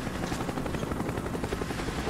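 A helicopter's rotor thumps close overhead.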